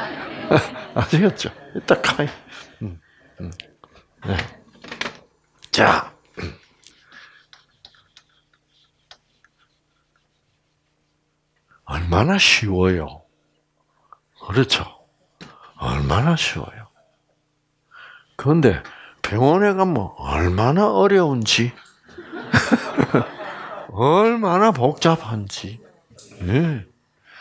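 An elderly man lectures calmly through a microphone, pausing now and then.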